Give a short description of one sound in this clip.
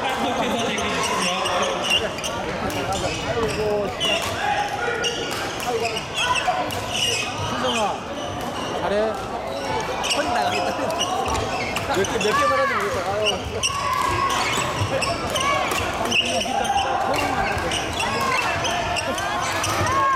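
Shoes squeak sharply on the hall floor.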